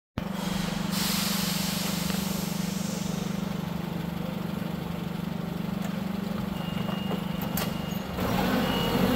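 A forklift engine idles with a steady low hum.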